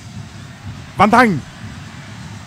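A referee's whistle blows sharply once.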